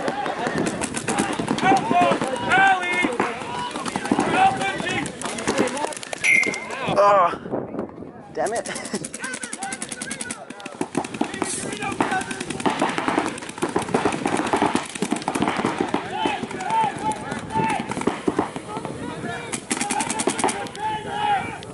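Paintball guns fire in rapid popping bursts.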